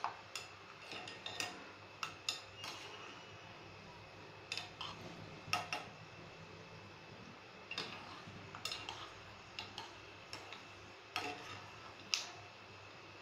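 A metal spoon clinks and scrapes against a pan.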